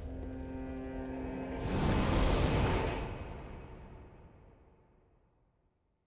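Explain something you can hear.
A deep rushing whoosh swells and slowly fades.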